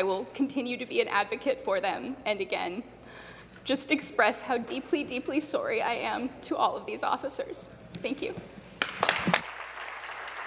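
A young woman speaks with feeling through a microphone.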